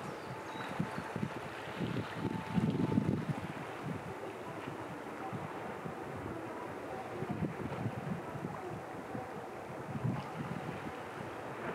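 Small waves lap gently against rocks on the shore.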